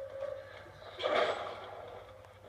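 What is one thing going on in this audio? A heavy door bursts open with a loud crash.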